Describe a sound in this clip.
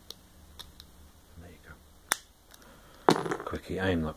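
A padlock shackle snaps open with a click.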